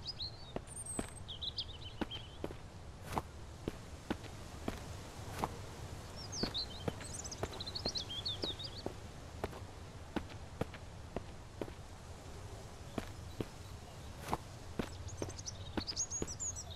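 Footsteps crunch slowly and steadily over dry ground.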